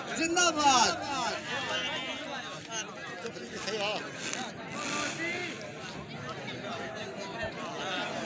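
A crowd of men chatters and shouts outdoors.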